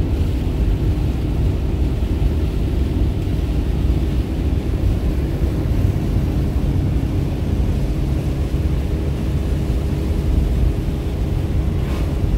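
Windshield wipers swish across the glass.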